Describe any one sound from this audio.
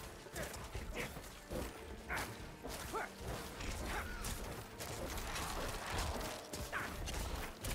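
Monsters screech and growl.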